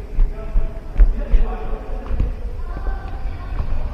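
A ball thuds on the floor.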